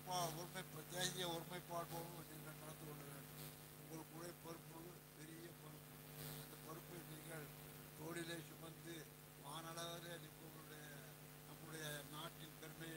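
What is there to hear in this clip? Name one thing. An elderly man speaks steadily through a microphone and loudspeakers, echoing in a large space.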